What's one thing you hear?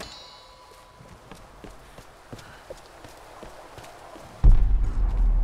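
Footsteps scuff on stone steps.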